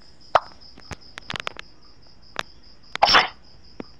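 A playing card snaps down onto a table.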